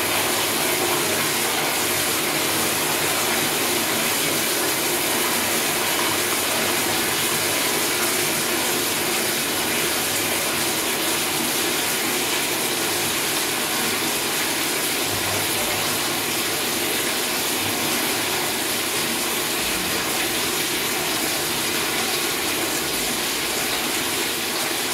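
Water runs steadily into a toilet bowl with a loud, hissing rush.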